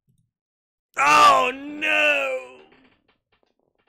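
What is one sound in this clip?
A man cries out loudly in anguish close to a microphone.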